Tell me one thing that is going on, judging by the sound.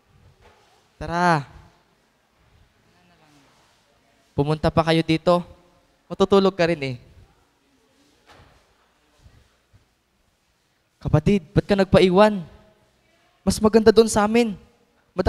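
A young man speaks into a microphone in short bursts with pauses.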